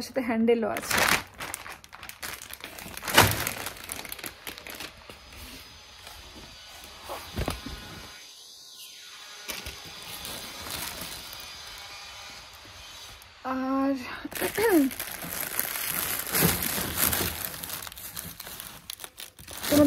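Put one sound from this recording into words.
Fabric packets rustle and crinkle as a hand pulls them from a shelf.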